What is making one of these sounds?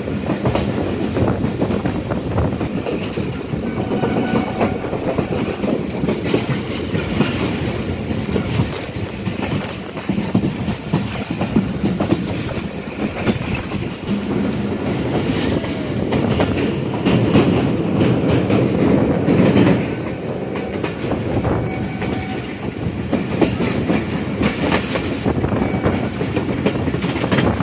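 A train rumbles and rattles steadily along the tracks.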